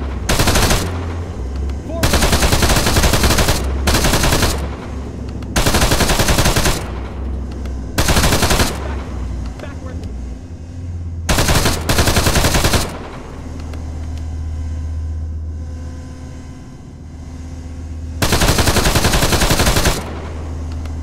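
A heavy machine gun fires in long, loud bursts.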